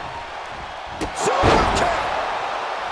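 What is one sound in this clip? A heavy blow lands with a loud smack.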